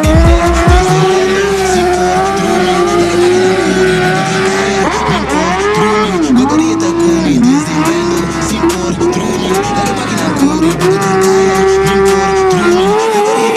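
A motorcycle engine revs hard in the distance.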